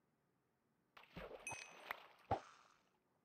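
A fishing bobber splashes in water.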